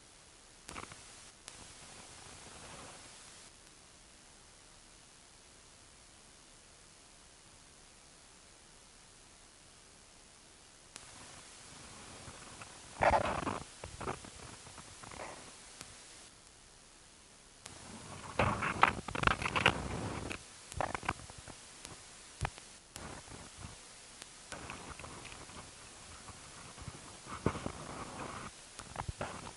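Leaves rustle softly in a light breeze outdoors.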